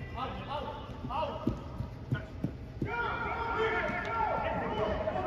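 Men shout and call out across a large echoing hall.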